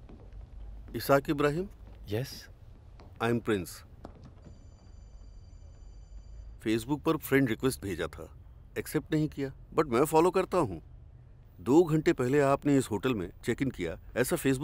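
An older man speaks warmly and with animation.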